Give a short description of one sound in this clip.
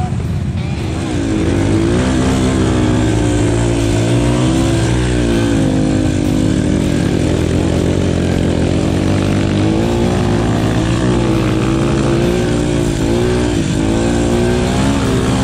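A motorcycle engine drones steadily and labours as it climbs.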